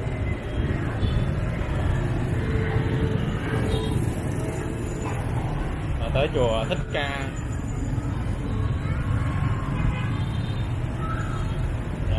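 Motorbike engines hum and buzz steadily all around in busy street traffic.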